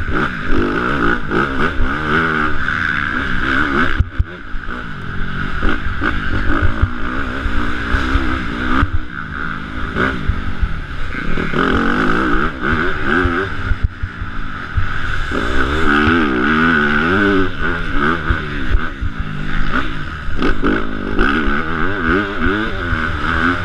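A motorcycle engine revs up and down loudly, close by.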